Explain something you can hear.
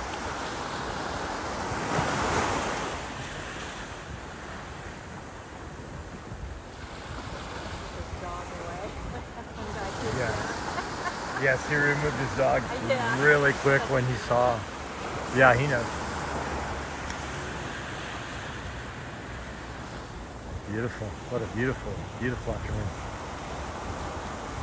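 Small waves break and wash up onto a sandy beach.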